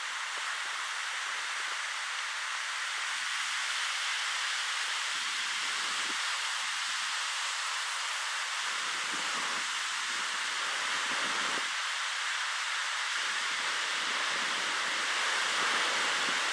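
Waves break and wash steadily nearby.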